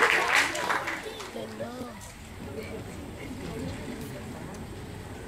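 People in an audience chatter quietly.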